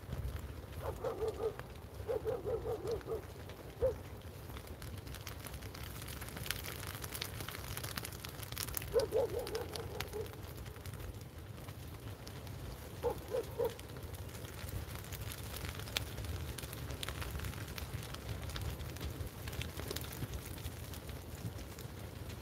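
Fire engines idle nearby with a low rumble.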